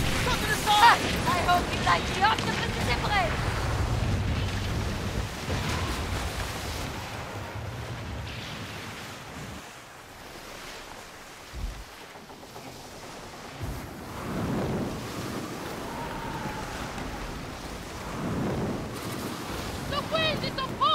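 Waves splash and rush against a ship's hull.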